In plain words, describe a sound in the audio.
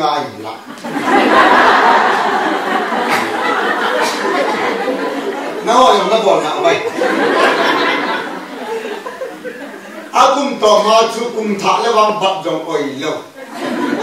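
A middle-aged man speaks with animation into a microphone, heard through a loudspeaker in an echoing hall.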